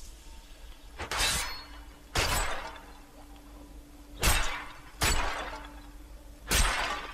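Heavy weapon blows land with loud, sudden crashes.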